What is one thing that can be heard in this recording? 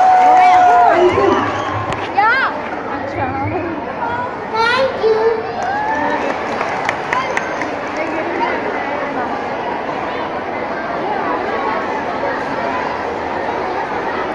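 A crowd of children chatters and calls out nearby.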